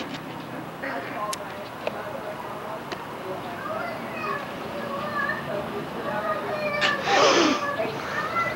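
A toddler babbles softly close by.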